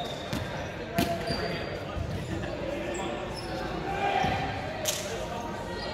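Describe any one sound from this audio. A volleyball thuds as it is hit.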